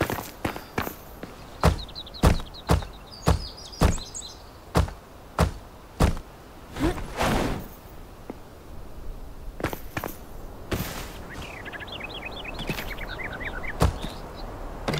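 Stone blocks thud heavily into place, one after another.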